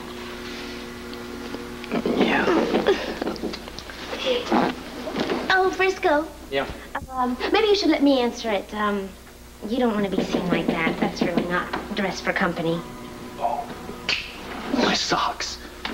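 A man speaks softly and playfully nearby.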